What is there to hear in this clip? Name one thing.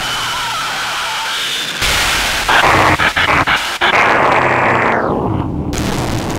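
Loud electronic music plays through speakers.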